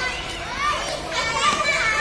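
A young girl shouts excitedly nearby.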